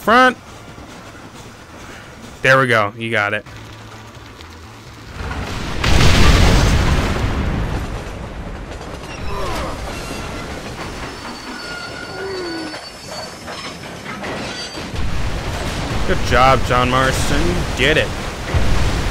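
A steam train's whistle blows loudly.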